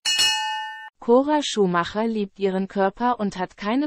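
A young woman speaks close up, with animation.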